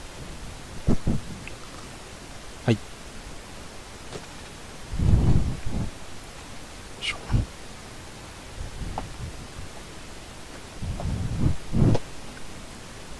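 Plastic-wrapped boxes knock and rustle as hands handle them.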